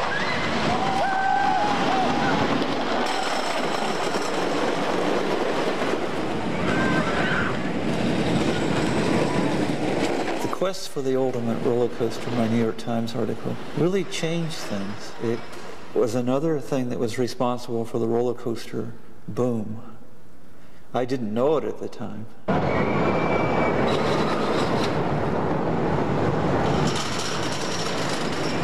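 A roller coaster rumbles loudly along wooden tracks.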